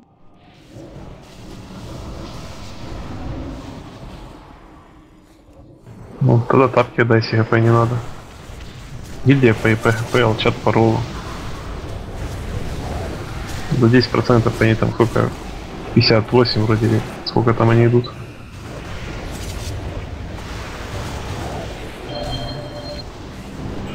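Magic spells whoosh and crackle during a fierce battle.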